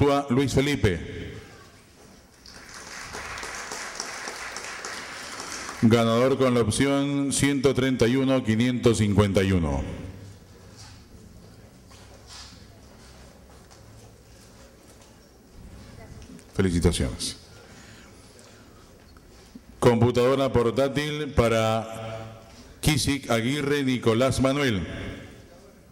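A man speaks into a microphone, heard through loudspeakers in an echoing hall.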